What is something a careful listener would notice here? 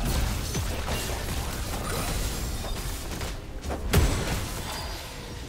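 Game spell effects and impacts crackle and boom in a busy fight.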